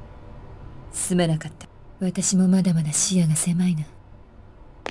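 A woman speaks calmly and apologetically.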